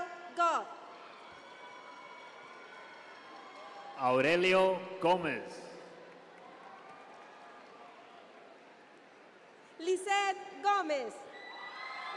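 A young woman whoops and cheers loudly in a large echoing hall.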